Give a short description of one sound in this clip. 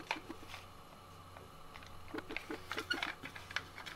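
A plastic cassette case snaps open.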